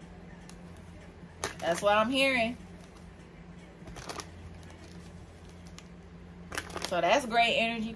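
Playing cards riffle and slap together as hands shuffle them.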